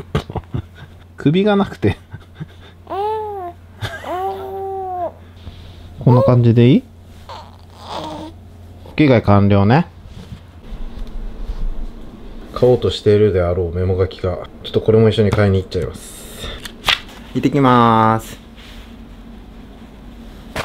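A man talks softly and playfully up close.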